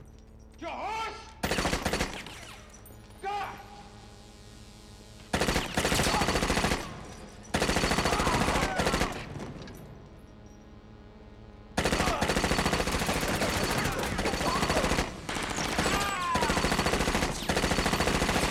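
A man shouts loudly and angrily.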